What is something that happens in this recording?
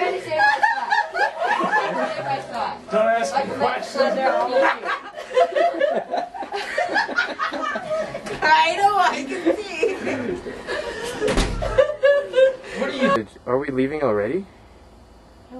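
Several young people talk and laugh together nearby.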